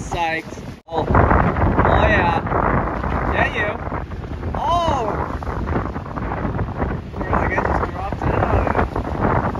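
Waves break and rush onto the shore.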